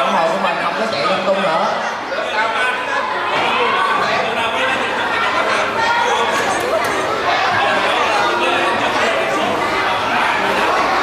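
A crowd of children chatters and calls out excitedly nearby.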